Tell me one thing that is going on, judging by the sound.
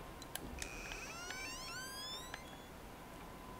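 A wooden clock door creaks open.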